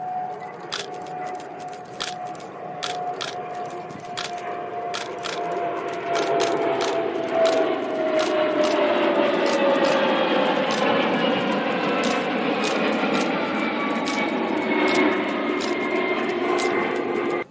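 A jet plane roars overhead, its whine slowly falling in pitch as it passes and the roar lingers.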